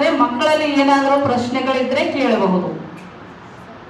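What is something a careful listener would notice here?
A woman sings through a microphone, heard over loudspeakers in a large room.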